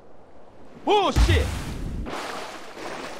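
Water splashes as a body plunges in.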